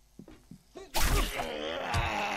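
A knife slashes into flesh with a wet thud.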